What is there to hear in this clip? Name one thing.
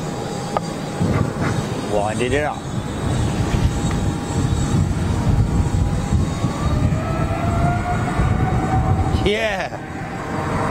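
Jet engines roar with a rising whine as an airliner speeds down a runway.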